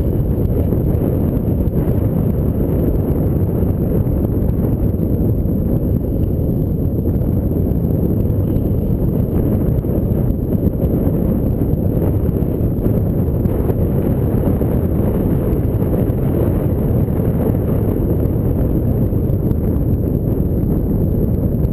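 Strong wind buffets a microphone outdoors.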